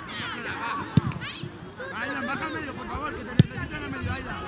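A football is kicked with a dull thud.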